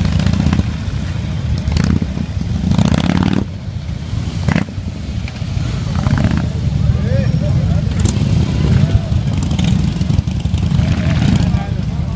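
A motorcycle engine revs as a bike pulls away.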